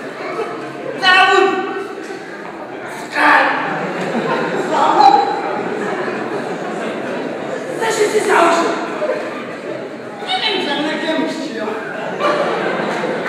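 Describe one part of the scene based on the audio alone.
A man speaks loudly and with animation in an echoing hall.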